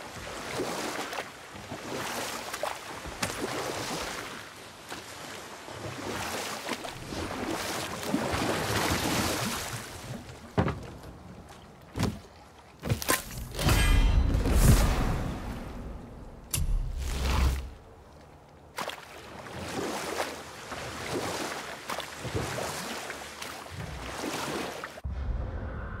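Oars splash and pull rhythmically through water.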